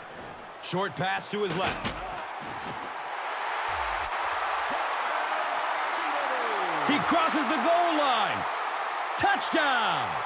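A large crowd cheers and roars in a big stadium.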